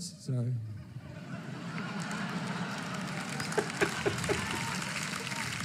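An audience laughs and murmurs, heard through a speaker.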